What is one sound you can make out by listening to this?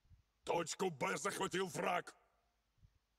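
A young man speaks loudly and briefly.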